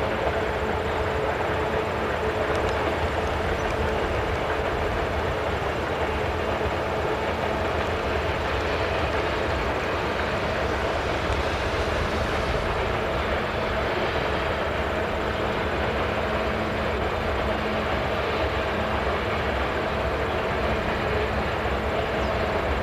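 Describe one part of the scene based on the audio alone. Diesel locomotives rumble steadily far off across the water.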